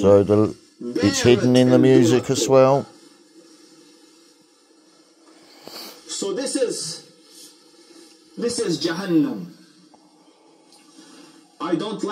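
A man speaks calmly through a television's loudspeaker, in bursts with pauses.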